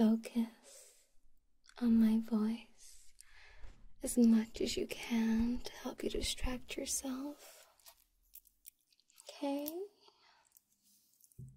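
A young woman speaks softly and close to the microphone.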